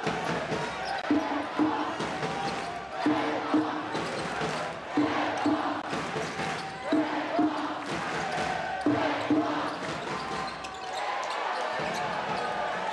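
A large crowd cheers and chants in an echoing arena.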